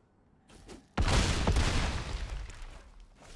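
A game's sound effect plays a rushing, crashing burst that slowly fades.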